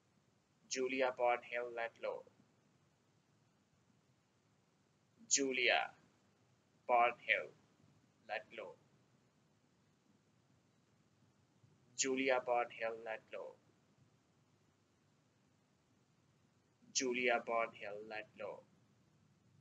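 A young man speaks clearly and slowly into a microphone in short bursts with pauses.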